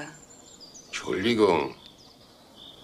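An elderly man speaks calmly up close.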